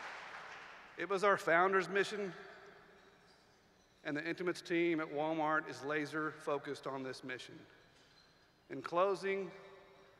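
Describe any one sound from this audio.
A man speaks with feeling into a microphone in a large echoing hall.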